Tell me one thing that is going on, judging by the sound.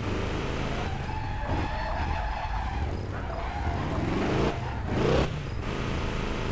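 Car tyres screech while cornering.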